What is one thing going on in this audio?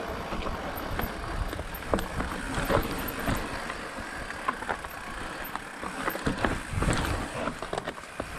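A mountain bike rattles and clatters over bumps on a dirt trail.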